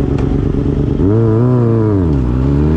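A motorcycle engine revs up and falls back.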